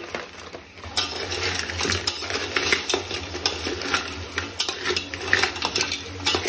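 A metal spatula scrapes and clinks against a pot.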